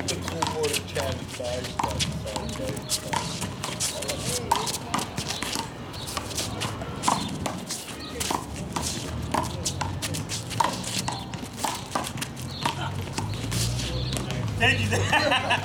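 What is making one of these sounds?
Sneakers scuff and squeak on hard pavement.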